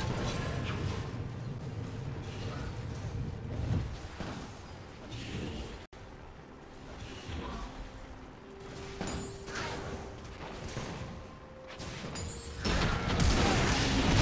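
Game sound effects of spells and attacks ring out in bursts.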